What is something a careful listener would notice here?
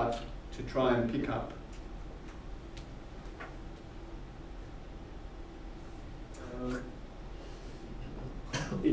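A man speaks calmly in a room with a slight echo, heard from a distance.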